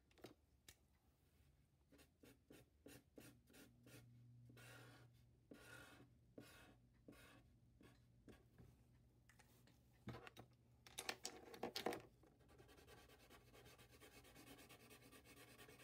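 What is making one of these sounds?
A felt-tip marker scratches and squeaks across paper in short strokes.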